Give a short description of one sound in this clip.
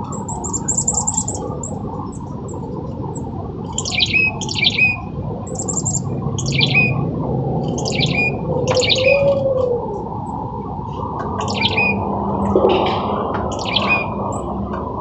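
Small birds chirp nearby in short, high calls.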